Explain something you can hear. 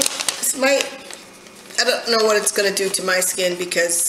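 Paper rustles in a woman's hands.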